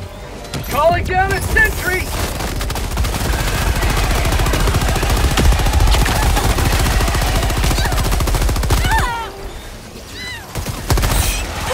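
Automatic gunfire rattles rapidly.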